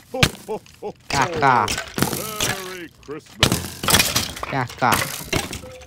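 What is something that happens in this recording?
Dull thuds land as blows strike a rattling skeleton.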